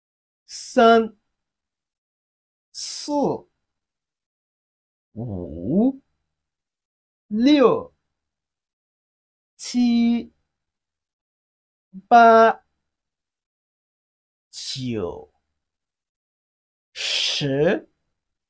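A young man speaks clearly and slowly into a close microphone, saying single words with pauses between them.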